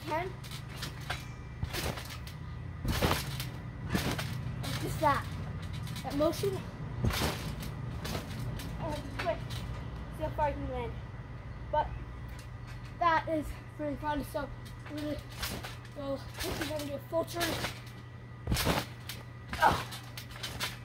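A trampoline mat thumps as a child bounces and lands on it.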